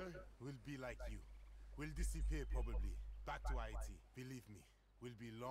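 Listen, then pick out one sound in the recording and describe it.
A young man speaks calmly and quietly, close by.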